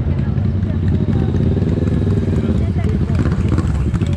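A motorcycle engine revs and rumbles close by.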